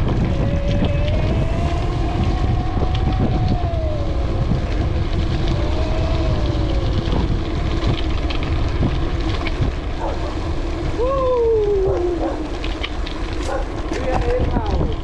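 Wind rushes past while riding outdoors.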